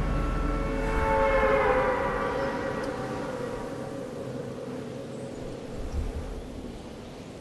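Lightning crackles and thunder booms.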